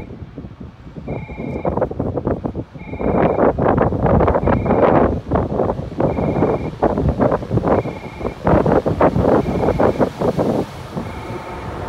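A train rolls in, wheels clattering rhythmically over rail joints.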